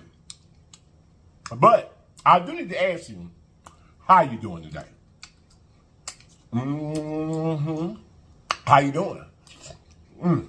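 A man chews food with soft, wet mouth clicks.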